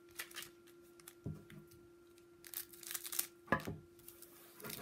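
Scissors snip through a foil wrapper.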